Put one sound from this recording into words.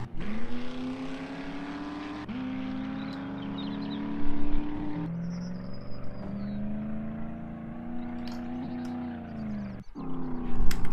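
A truck engine rumbles and revs as it drives.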